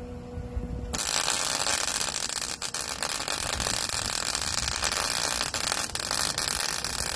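A welding arc crackles and sizzles steadily.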